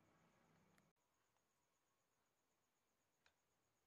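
A small plastic part clicks into place.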